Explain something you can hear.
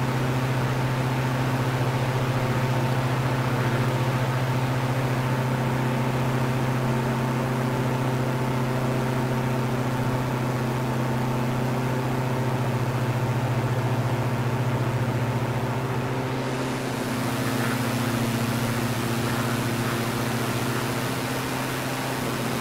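Wind rushes past a small plane.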